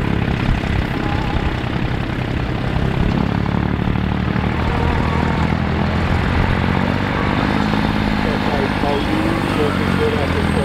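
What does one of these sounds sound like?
A heavy truck engine rumbles and chugs nearby.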